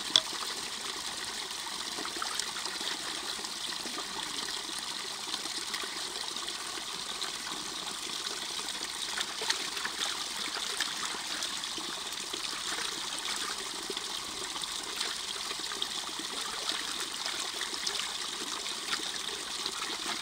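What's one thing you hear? A small stream trickles and splashes over rocks nearby.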